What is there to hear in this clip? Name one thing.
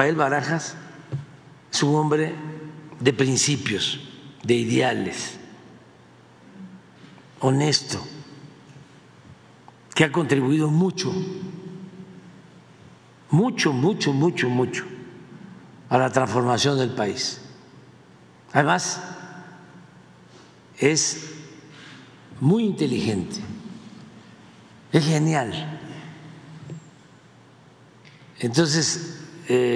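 An elderly man speaks calmly into a microphone, in phrases with pauses.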